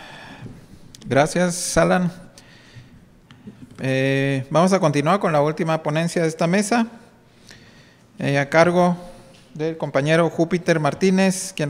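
A middle-aged man speaks calmly into a microphone in a large hall.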